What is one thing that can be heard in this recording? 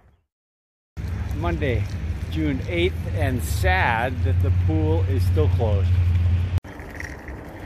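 A middle-aged man talks close to the microphone, outdoors in wind.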